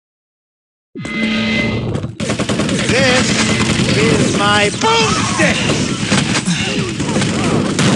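Loud, busy video game sounds of footsteps, weapons and effects play.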